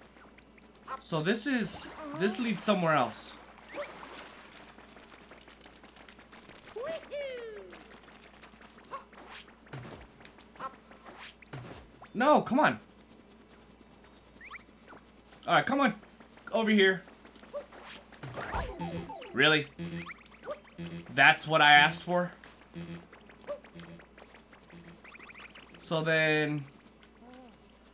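Cartoonish game sound effects bloop and chime now and then.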